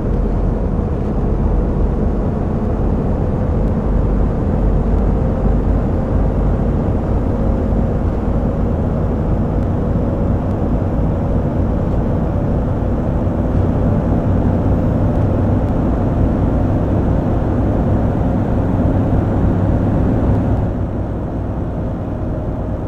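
Tyres roll along a road.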